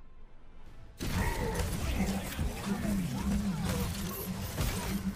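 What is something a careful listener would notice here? Game gunfire and hit effects crackle rapidly.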